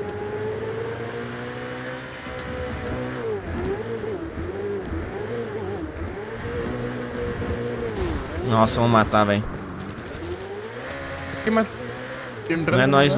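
A sports car engine roars and revs up and down through gear changes.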